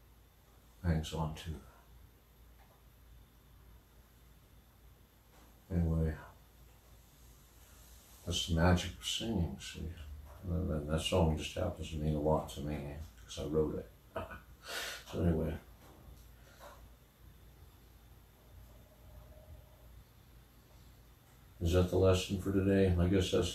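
A middle-aged man speaks calmly and close by, in short bursts with pauses.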